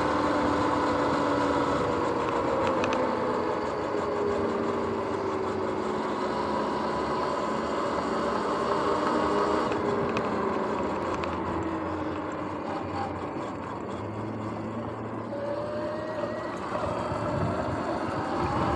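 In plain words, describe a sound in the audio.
An electric bike motor whines steadily, rising and falling in pitch.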